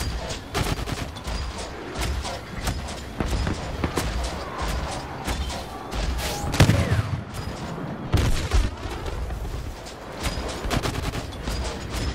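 Blaster shots fire rapidly.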